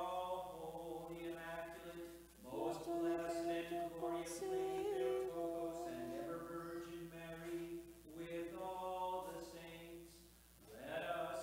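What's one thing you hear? A man chants in a steady, sung voice, echoing in a large hall.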